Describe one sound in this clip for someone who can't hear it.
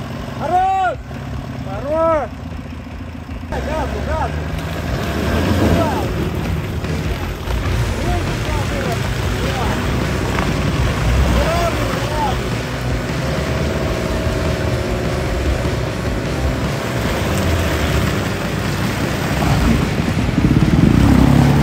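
An engine revs hard as a car strains in deep mud.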